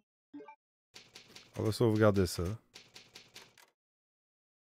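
A young man speaks with animation, close into a microphone.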